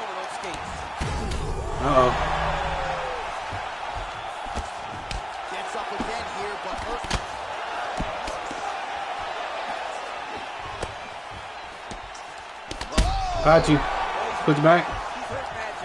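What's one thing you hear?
A fighter crashes down onto the mat.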